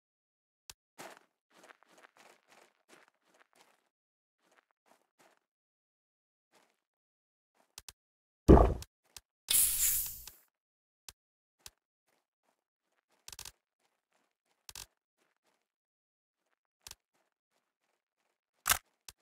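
Short interface clicks and pops sound as items are moved between slots.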